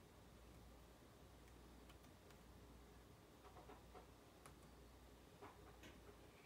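Fingers tap softly on laptop keys.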